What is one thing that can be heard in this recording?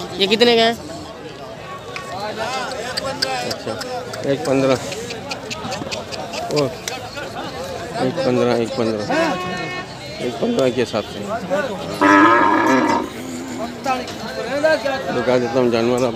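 Men talk nearby in a busy outdoor crowd.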